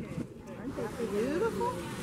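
People talk nearby outdoors.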